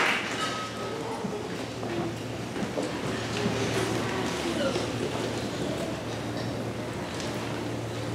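A school band plays together in a large echoing hall.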